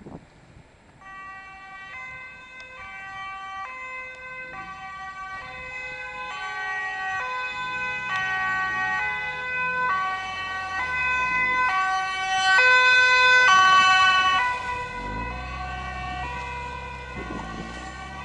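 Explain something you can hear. An ambulance siren wails in a two-tone pattern, growing louder as it approaches and then fading slightly as it passes.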